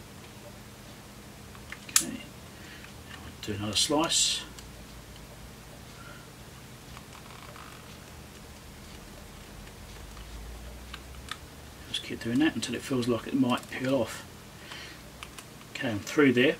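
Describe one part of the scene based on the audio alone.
Small pliers click and squeeze against a cable's plastic end.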